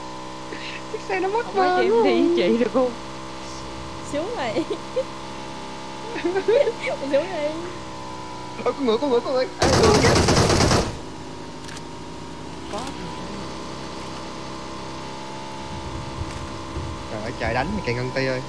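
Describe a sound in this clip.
A young woman talks with animation into a close microphone.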